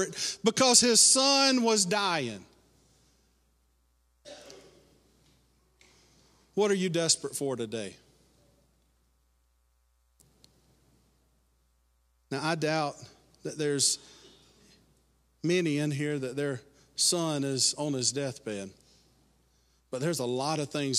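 A middle-aged man speaks with animation through a microphone, heard over loudspeakers with a slight room echo.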